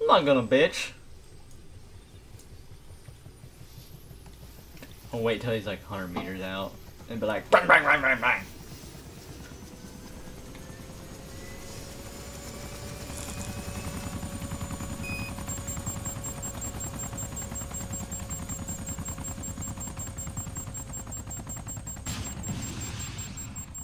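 A helicopter's rotor thumps steadily and grows louder as it lifts off and flies overhead.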